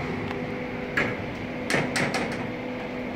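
Elevator buttons click as they are pressed.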